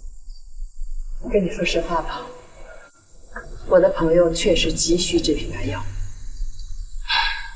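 A middle-aged woman speaks calmly and earnestly nearby.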